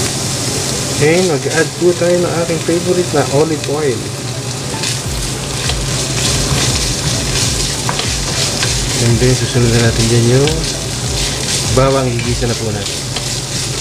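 A wooden spatula scrapes and stirs against a frying pan.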